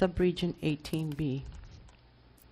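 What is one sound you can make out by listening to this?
A woman speaks briefly through a microphone, then falls silent.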